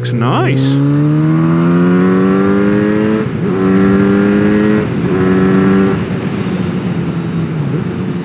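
Wind rushes past a moving rider.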